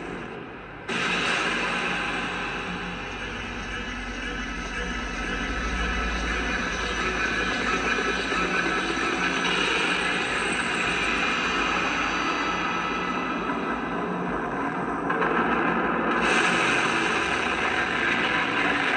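A steady roar of fire and explosions plays.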